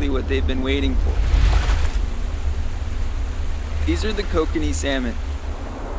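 A rushing stream splashes over rocks.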